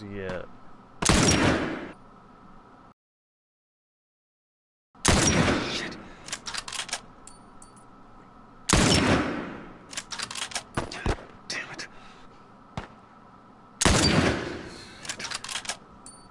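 Rifle shots crack loudly, each followed by a long echoing rumble.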